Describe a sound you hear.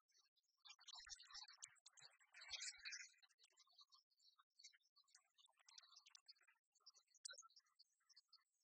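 Game pieces click and clatter on a table.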